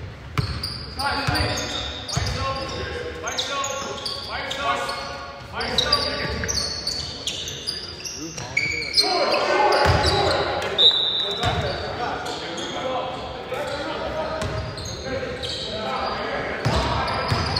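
Men shout to each other across the court.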